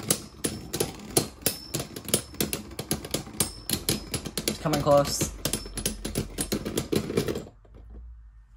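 Spinning tops clash and clatter against each other with rapid sharp clicks.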